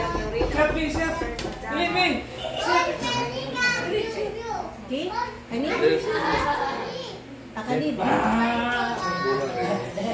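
Several women and men talk and laugh together close by.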